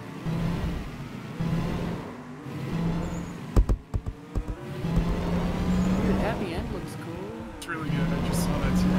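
A car engine whirs and hums steadily.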